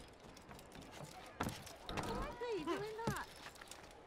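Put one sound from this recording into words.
Footsteps land on wooden planks.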